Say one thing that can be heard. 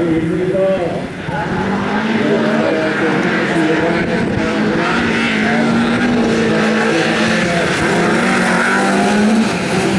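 Several car engines roar together as a pack pulls away.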